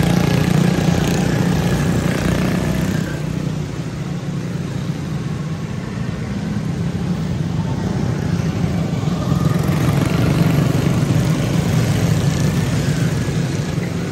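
Small racing kart engines buzz and whine loudly as they race past close by.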